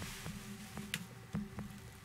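Fingers tap lightly on a touchscreen.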